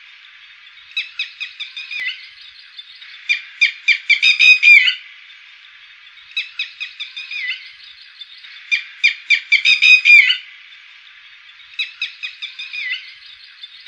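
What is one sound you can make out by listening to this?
A bird gives loud, rapid, sharp calls in repeated bursts.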